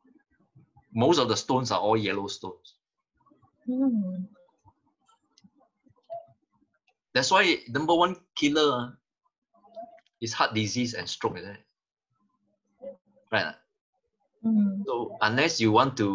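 A middle-aged man speaks calmly over an online call, in short phrases with pauses.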